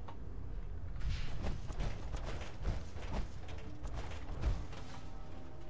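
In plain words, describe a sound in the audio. Heavy footsteps clank on metal stairs.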